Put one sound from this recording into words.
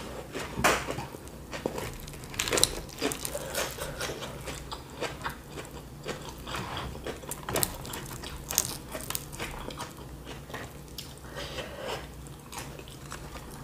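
Fingers pick through crumbly food with soft crackles.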